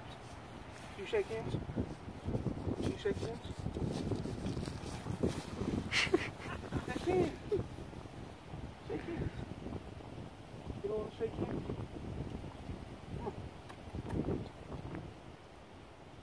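Dry grass rustles and crunches under scuffling feet and hooves.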